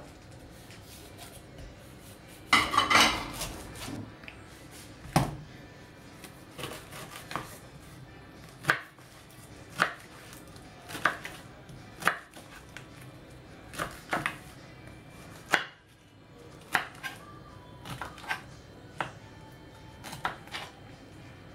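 A knife cuts through a pineapple.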